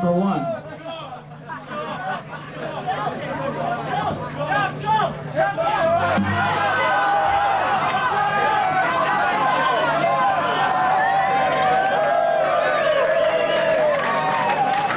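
An audience chatters and cheers.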